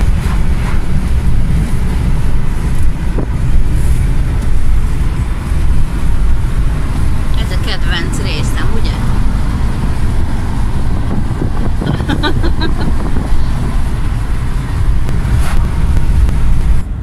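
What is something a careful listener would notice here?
A car's tyres and engine rumble steadily at speed.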